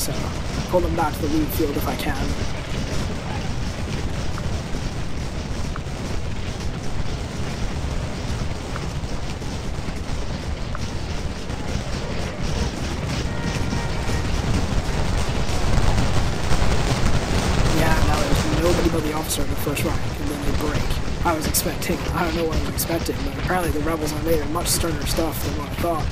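Muskets fire in rattling volleys.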